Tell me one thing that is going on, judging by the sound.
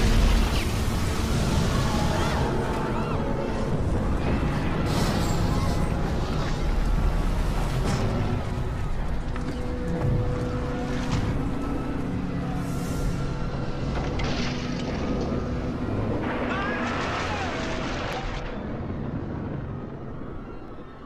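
A huge ship's hull groans and creaks as it sinks, with a deep rumble.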